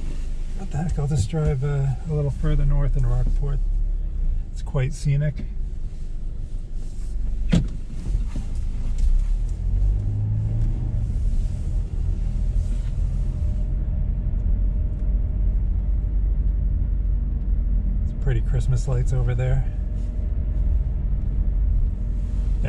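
Tyres rumble over the road.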